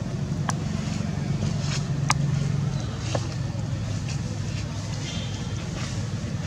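A monkey chews food close by.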